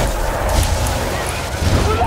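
Electricity crackles and zaps sharply.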